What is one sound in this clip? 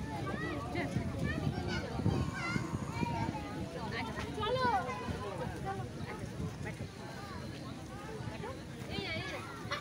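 Young children squeal and babble excitedly close by.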